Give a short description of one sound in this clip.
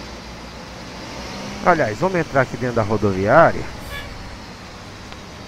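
A bus engine hums low and steady.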